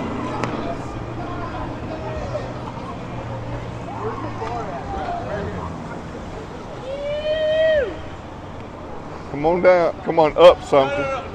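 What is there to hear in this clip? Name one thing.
Cars drive past one after another on a street.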